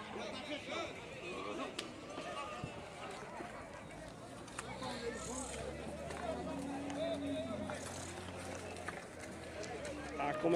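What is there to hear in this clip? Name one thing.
Men talk and call out nearby, outdoors.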